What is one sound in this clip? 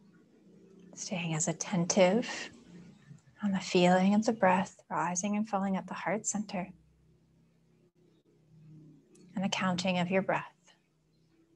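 A young woman speaks slowly and calmly, close to a microphone.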